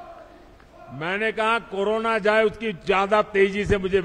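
An elderly man speaks loudly and slowly into a microphone.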